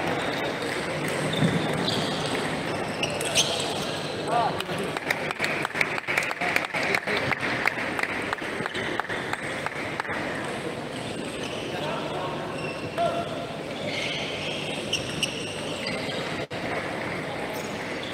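Crowd chatter murmurs in a large echoing hall.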